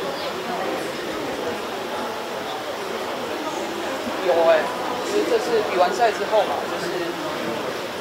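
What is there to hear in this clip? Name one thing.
A young man speaks calmly into microphones close by.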